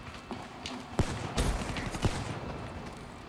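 Gunshots crack loudly in quick bursts.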